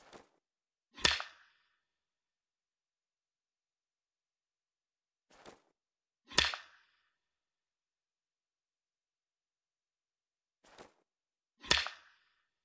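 A clapperboard snaps shut with a sharp clack.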